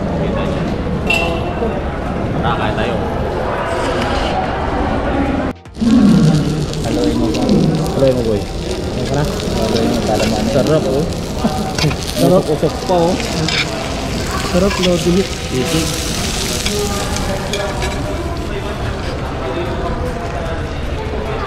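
Chatter of a crowd murmurs in a large, echoing hall.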